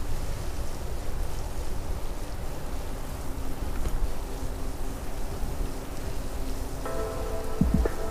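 Bicycle tyres hum along a wet paved path.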